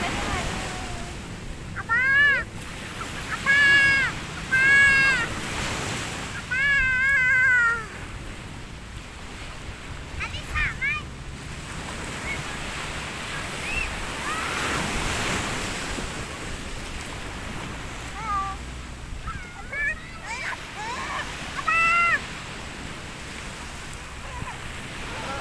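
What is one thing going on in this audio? Waves wash gently onto the shore.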